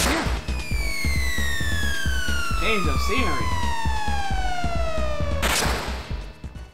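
16-bit video game sound effects sweep downward in pitch.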